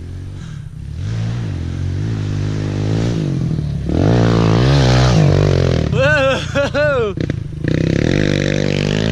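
A dirt bike engine revs loudly as the bike passes close by and speeds away.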